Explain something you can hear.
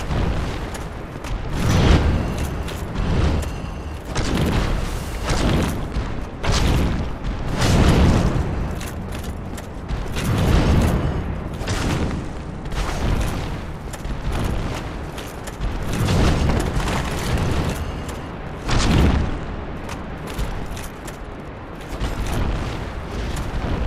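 Armour clanks with quick footsteps on stone.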